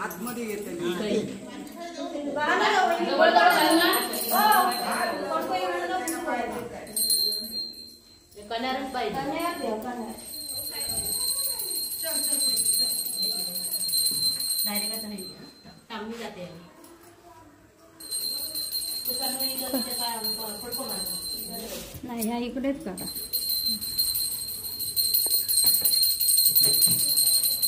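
Several women talk and chatter close by.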